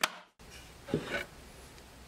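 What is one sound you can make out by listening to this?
A hand rubs across a wooden plank.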